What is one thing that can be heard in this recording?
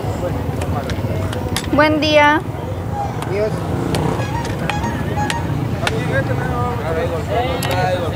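A metal bar scrapes and thuds into soil.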